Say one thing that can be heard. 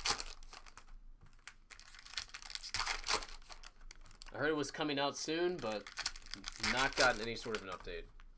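Card packs rustle and crinkle as hands handle them.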